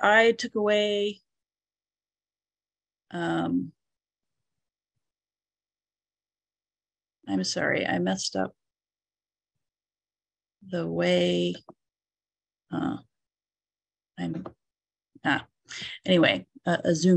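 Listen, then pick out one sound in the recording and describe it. An elderly woman speaks calmly over an online call, with pauses.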